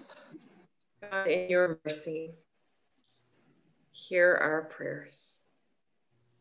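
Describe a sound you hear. An elderly woman speaks calmly over an online call.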